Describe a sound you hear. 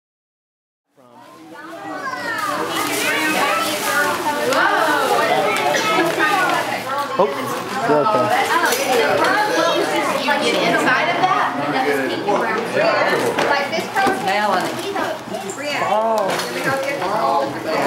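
Several adults chatter and laugh together.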